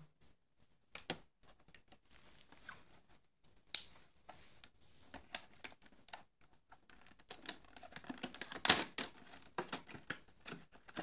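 Stiff plastic packaging crinkles and crackles as fingers handle it.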